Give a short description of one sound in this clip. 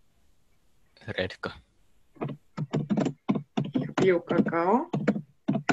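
A young woman speaks calmly and clearly over an online call, reading out words.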